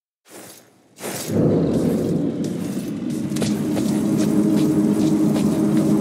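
Footsteps crunch on gravel with armour clinking.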